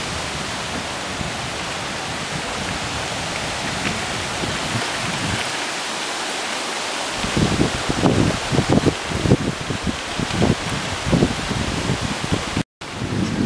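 Bicycle tyres roll over a gravel path.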